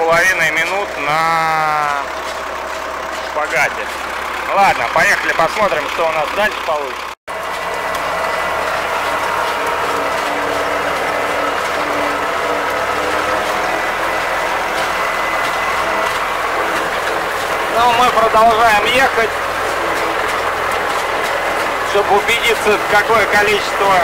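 A tractor engine runs with a steady drone.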